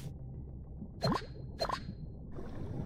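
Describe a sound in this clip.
A short bubbly chime plays twice as an item is picked up underwater.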